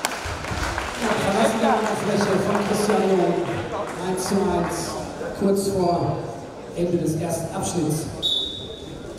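A man announces over a loudspeaker in an echoing hall.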